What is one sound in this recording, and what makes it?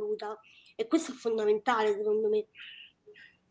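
An older woman speaks with animation over an online call.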